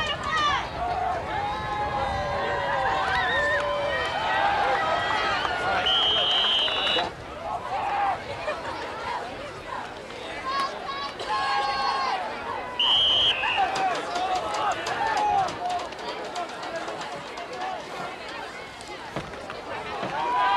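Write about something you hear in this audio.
A crowd shouts and cheers outdoors.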